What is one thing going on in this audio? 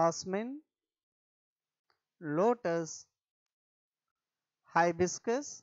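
A man reads out words slowly and clearly into a microphone, with pauses between them.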